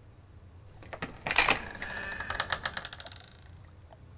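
A heavy door swings open with a creak.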